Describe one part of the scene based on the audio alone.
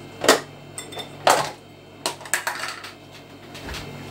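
A lid is pulled off a plastic tub with a crackle.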